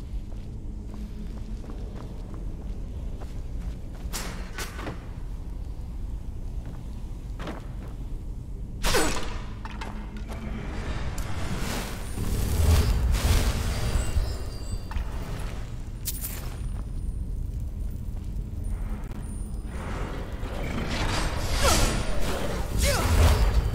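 A magic spell crackles and hums from a hand.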